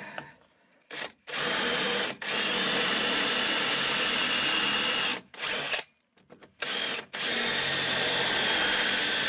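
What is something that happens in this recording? A cordless drill whirs loudly, boring into wood in several bursts.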